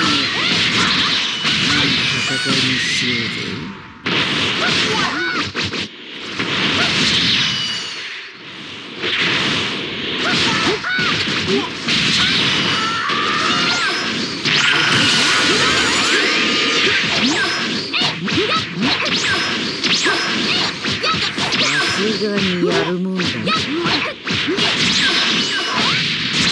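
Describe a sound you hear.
Punches and kicks land with sharp thuds in rapid bursts.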